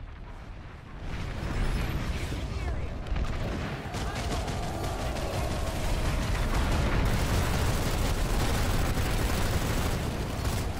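A vehicle engine rumbles loudly as it drives over rough ground.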